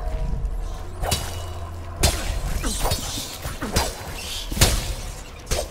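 A blade slashes and strikes flesh with sharp wet thuds.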